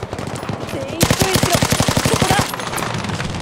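A machine gun fires a rapid burst close by.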